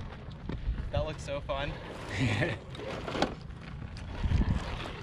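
Loose gravel crunches under small tyres.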